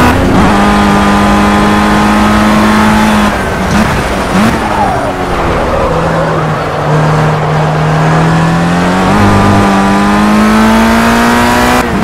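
A racing car engine whines at high revs, drops as the car brakes into a corner, then climbs again as it accelerates.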